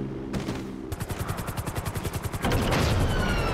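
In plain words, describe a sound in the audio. A helicopter's rotor thumps rapidly.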